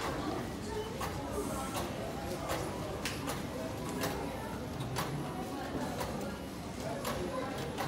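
Footsteps click on a hard floor.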